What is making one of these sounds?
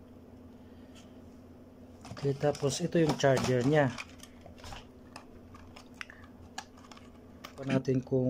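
A small cardboard box rustles and scrapes in hands.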